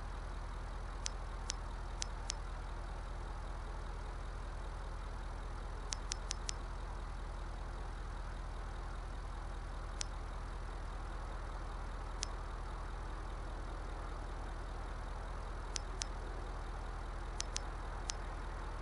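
Short soft menu clicks tick now and then as a selection moves up and down.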